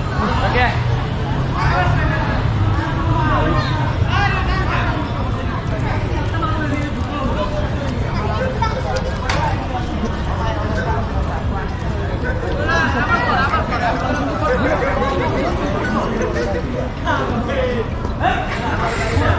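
Young men talk and chatter nearby outdoors.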